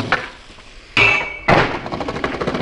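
A skateboard lands with loud sharp clacks.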